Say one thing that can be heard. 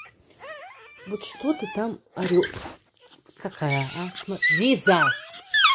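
A dog groans and howls in lower, rising and falling moans.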